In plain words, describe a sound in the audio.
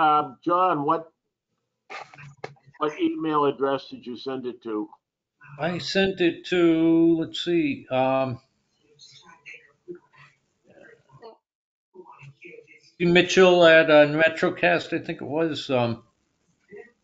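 An elderly man talks calmly over an online call.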